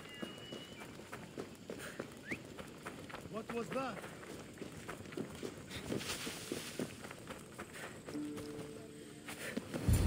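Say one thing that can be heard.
Footsteps crunch on a rocky path.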